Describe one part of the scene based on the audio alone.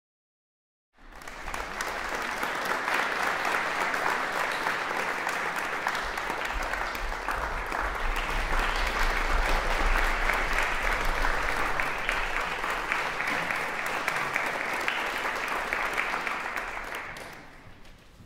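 An audience applauds loudly in a large echoing hall, then the applause dies away.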